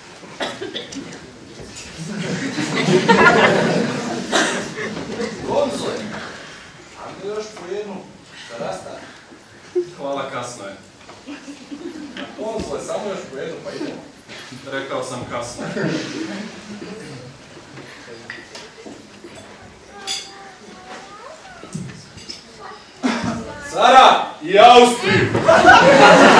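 Several men speak in turn, heard from a distance in a hall.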